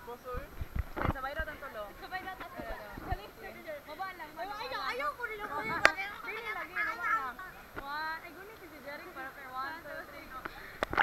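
Young women talk and laugh close by, heard outdoors.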